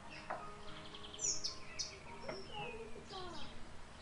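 A dish clinks as it is set down on a table.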